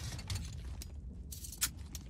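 A lock clicks as it is picked.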